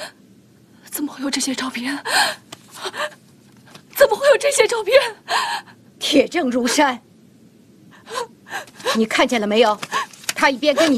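A young woman speaks in shock, close by.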